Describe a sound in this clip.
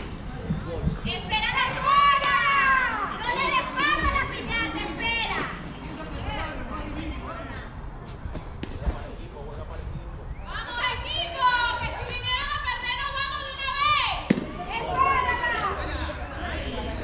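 Young men shout and call out across an open field.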